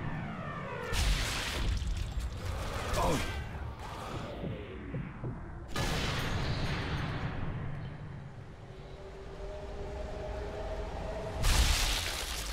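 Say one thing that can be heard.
A rifle fires loud, echoing shots.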